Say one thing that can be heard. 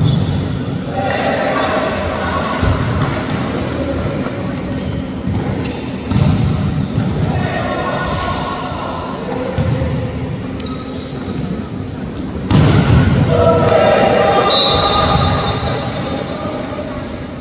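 A crowd of young spectators cheers and shouts.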